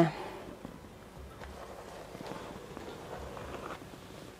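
A sheet of baking paper rustles as it is lifted.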